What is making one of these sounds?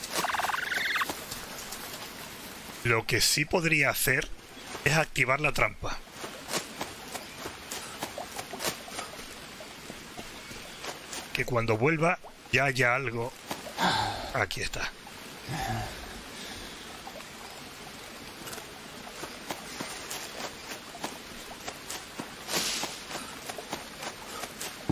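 Footsteps rustle through dense leaves and undergrowth.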